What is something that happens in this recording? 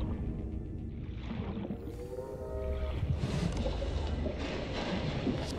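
A low underwater rumble hums steadily.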